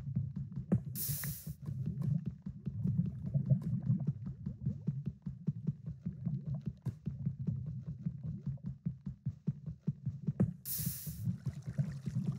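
Water splashes as it pours out of a bucket.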